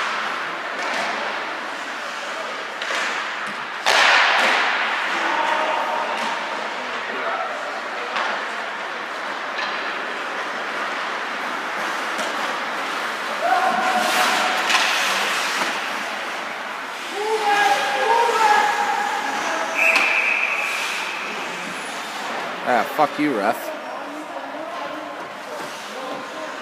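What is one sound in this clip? A crowd of spectators murmurs and cheers in a large echoing rink.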